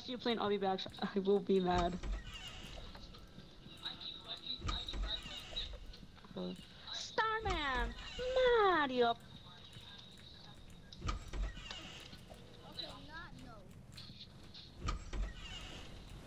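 A door swings open with a dull thud.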